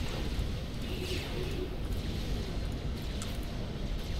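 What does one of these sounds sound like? Energy beams zap and crackle.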